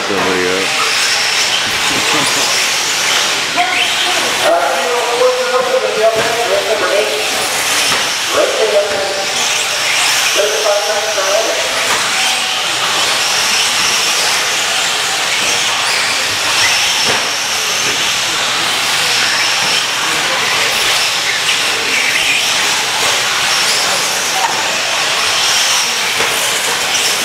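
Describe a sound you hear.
Several electric radio-controlled short-course trucks whine around a dirt track.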